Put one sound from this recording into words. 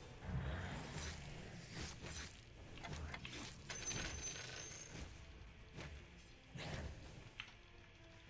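Spell blasts and weapon hits crash in quick bursts during a fight.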